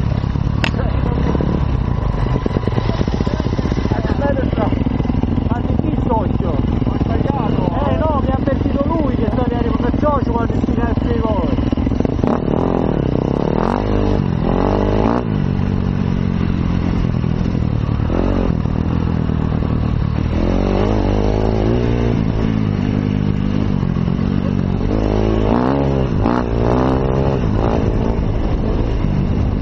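A motorcycle engine roars steadily, revving up and down.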